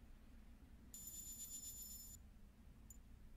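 A menu opens with a bright, ringing chime.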